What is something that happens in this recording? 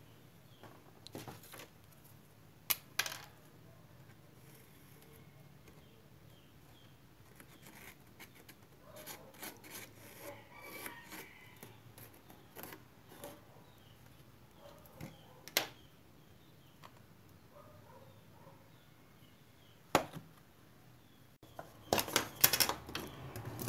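Small objects knock and tap on a hard tabletop.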